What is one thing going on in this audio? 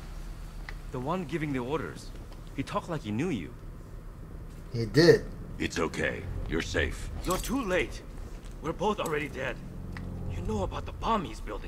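A man speaks in a tense, pleading voice.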